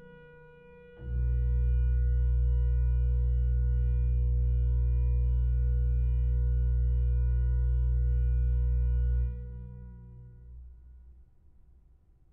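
A deep organ chord swells loudly, holds, then dies away with a long echo.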